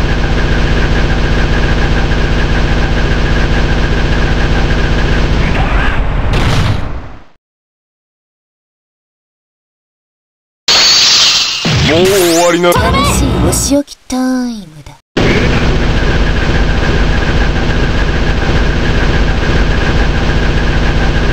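Rapid explosive hits crackle and boom in a dense, steady burst.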